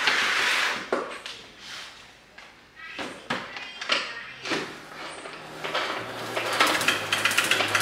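A mop squelches as it is wrung in a spinning bucket.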